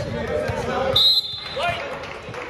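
A referee's whistle blows sharply in an echoing gym.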